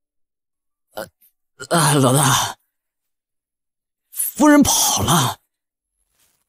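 A young man speaks urgently into a phone.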